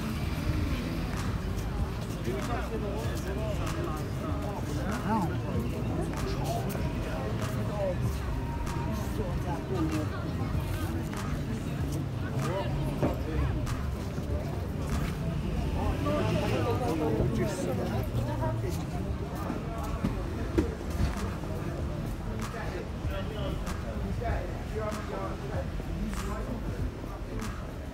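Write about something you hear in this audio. Many people's voices murmur and chatter nearby, outdoors.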